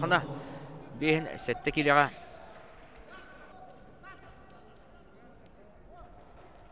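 Spectators murmur and chatter quietly in the stands.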